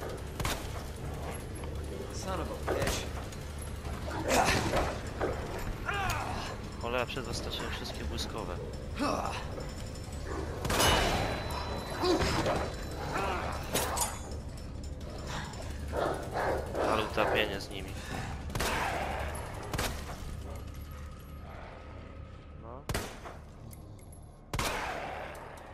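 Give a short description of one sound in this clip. Handgun shots ring out sharply, one at a time.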